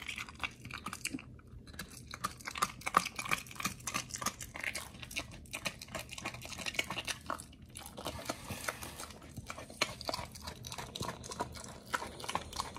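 A dog's toy squeaks.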